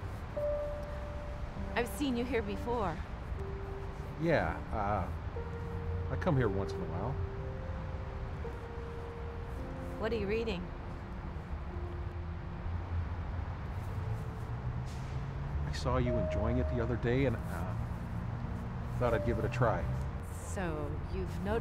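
An elderly woman talks calmly close by outdoors.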